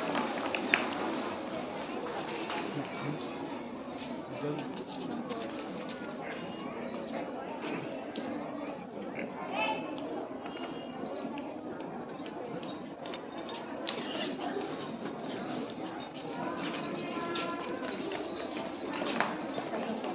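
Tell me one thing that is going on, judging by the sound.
A crowd of children chatters and calls out nearby.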